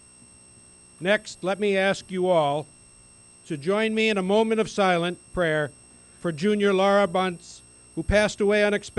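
An elderly man speaks calmly through a microphone and loudspeakers outdoors.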